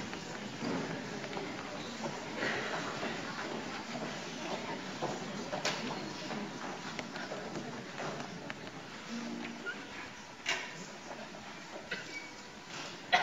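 Children murmur and chatter quietly in an echoing hall.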